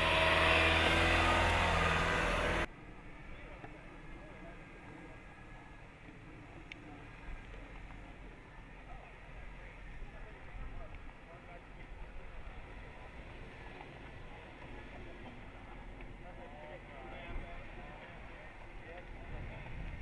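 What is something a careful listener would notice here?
Tyres crunch over gravel and rock.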